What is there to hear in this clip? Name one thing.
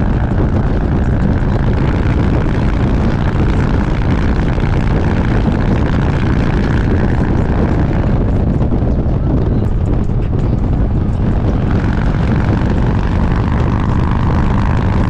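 A motorcycle engine rumbles steadily at highway speed.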